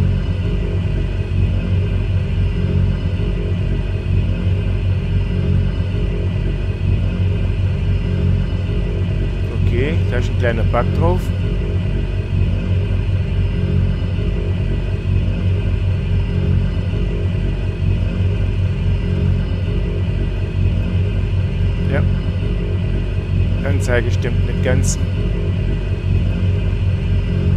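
Aircraft engines drone steadily with a low hum.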